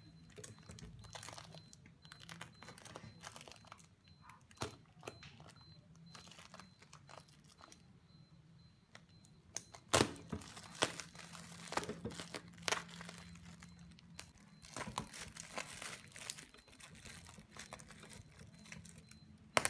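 A knife scrapes and cuts through plastic packaging.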